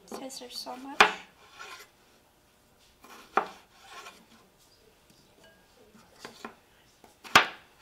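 A knife chops through a cucumber onto a wooden board.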